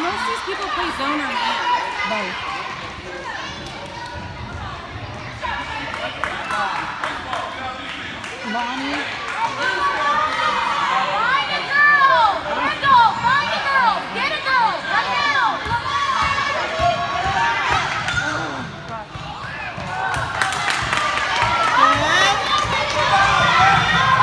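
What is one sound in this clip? A crowd of spectators chatters and cheers in an echoing hall.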